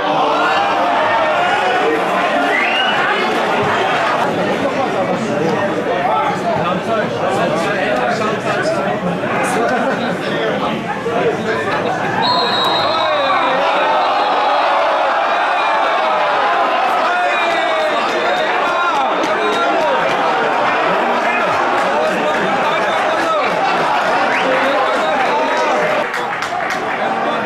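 A crowd of spectators chants and sings loudly in the distance.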